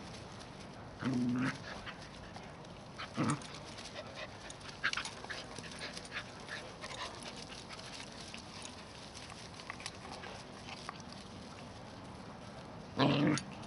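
A small dog yelps in short, high barks.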